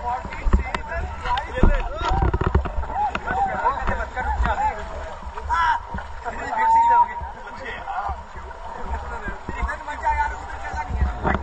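A river rushes and splashes steadily.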